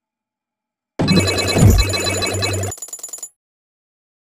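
A bright chime rings as a coin is collected.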